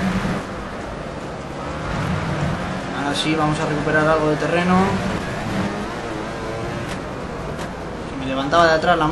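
A motorcycle engine roars, revving up and down as it shifts gears.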